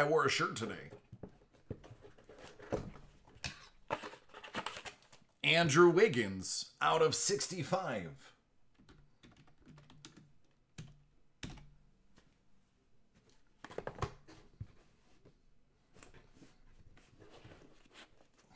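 Cardboard boxes scrape and tap as hands handle them.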